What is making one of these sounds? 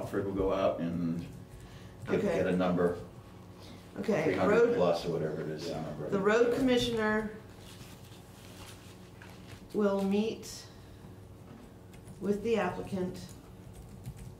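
A middle-aged woman speaks calmly in short bursts, close by.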